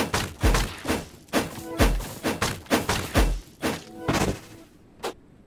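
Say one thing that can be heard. Quick sword swings whoosh and strike in rapid succession.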